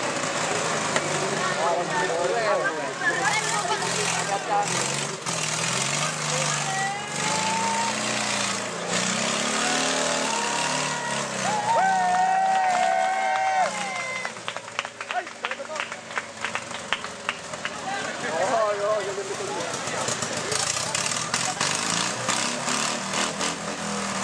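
A Citroën 2CV's air-cooled flat-twin engine revs under load.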